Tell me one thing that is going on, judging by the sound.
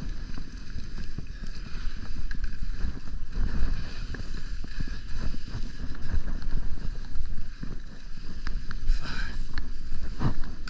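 Skis scrape and hiss over packed snow close by.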